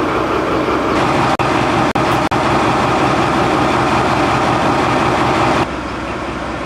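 A diesel locomotive engine rumbles loudly up close.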